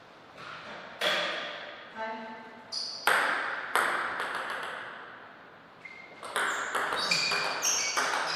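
A ping-pong ball bounces on a table and paddles with sharp clicks.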